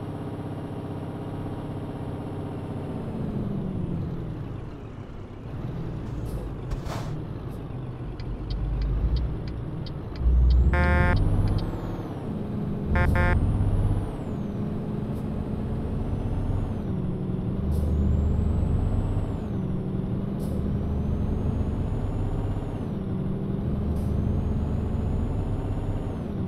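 A truck engine hums steadily, its pitch rising and falling with the gears.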